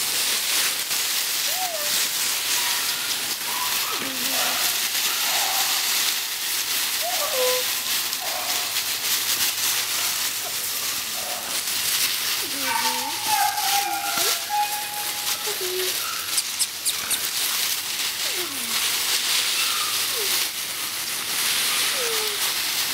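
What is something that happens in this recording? Puppies scramble through dry leaves with a rustle.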